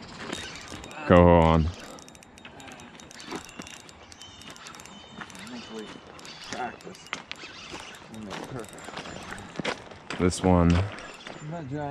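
A fishing reel's drag whirs in short rising bursts.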